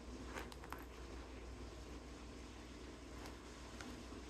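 A toy rustles as a kitten bats it.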